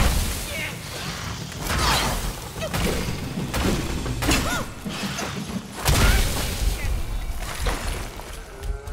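Heavy blows clash and thud in a fight.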